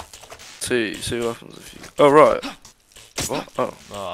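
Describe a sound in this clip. A knife stabs into flesh with wet, heavy thuds.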